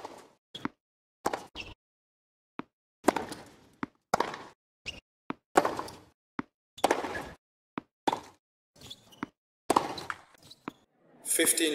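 Tennis balls are struck sharply by rackets in a quick back-and-forth rally.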